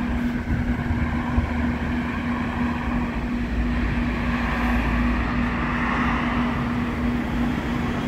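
A tram hums steadily close by.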